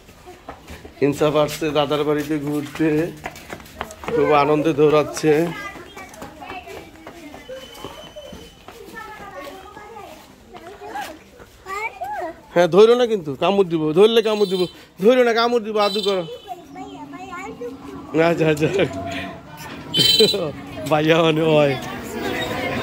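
A young boy talks loudly close by.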